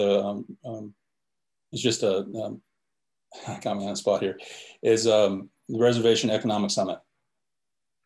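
A middle-aged man speaks calmly over an online call, with pauses.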